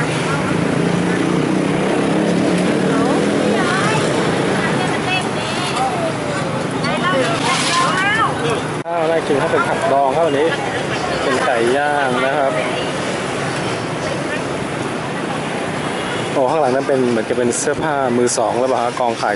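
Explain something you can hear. Traffic and crowd noise fill an outdoor street.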